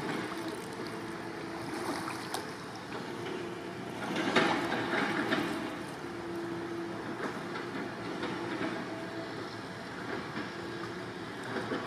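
A paddle splashes and dips into water.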